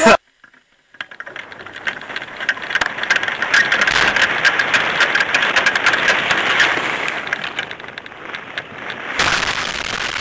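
Wind rushes loudly past a hang glider in flight.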